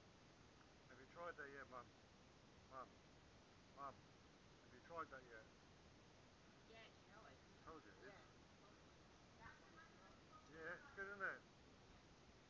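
A woman talks nearby in short bursts.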